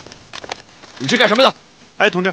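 A young man shouts a question loudly and angrily.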